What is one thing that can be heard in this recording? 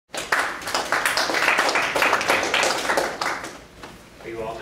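A small audience claps.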